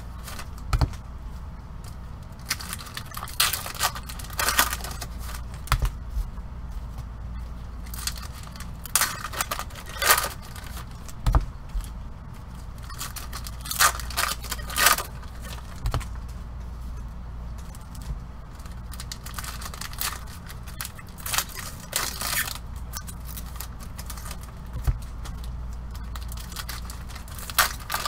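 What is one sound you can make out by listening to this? Gloved hands rustle and crinkle foil card packs.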